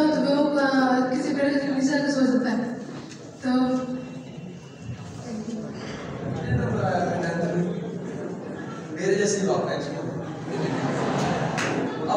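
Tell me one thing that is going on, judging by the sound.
A man speaks with animation through a loudspeaker in a large echoing hall.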